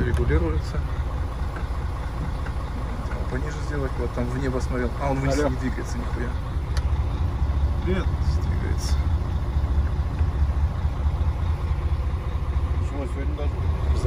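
A diesel engine idles with a low, steady rumble.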